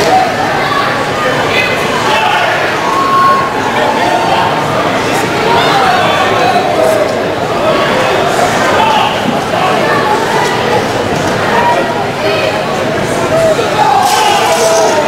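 A crowd of men and women chatter throughout in a large echoing hall.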